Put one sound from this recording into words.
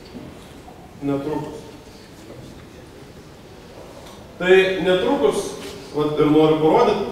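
A man presents calmly through a microphone, with pauses.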